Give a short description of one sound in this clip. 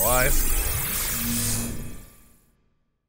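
A magical beam of light hums and shimmers.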